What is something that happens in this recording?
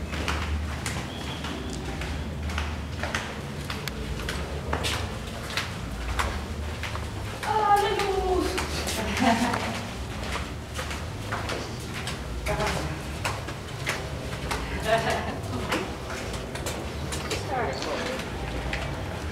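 Footsteps echo on a stone floor in a tunnel.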